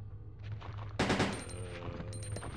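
A gunshot cracks.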